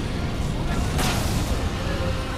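A magical blast bursts with a sharp whoosh.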